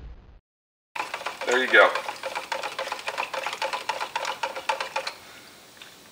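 A brush scrapes and knocks as paint is stirred in a small can.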